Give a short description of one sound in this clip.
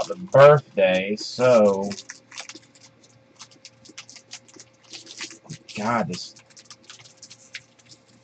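A foil wrapper crinkles and rustles as hands tear open a pack of cards.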